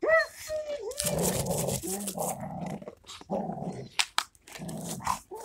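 A dog growls low and rough.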